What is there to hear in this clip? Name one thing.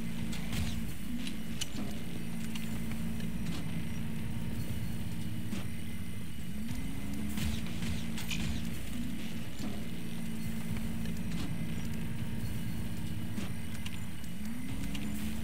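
Short electronic clicks sound as menu items are chosen.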